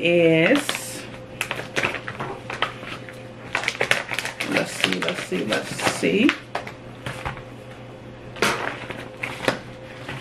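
Foil packaging crinkles and rustles in hands.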